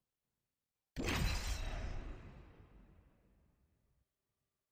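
A deep game whoosh booms and slowly fades as a match loads.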